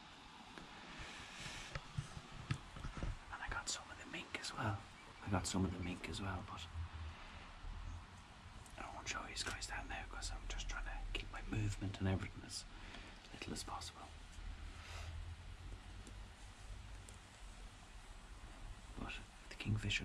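A young man talks calmly and closely into the microphone.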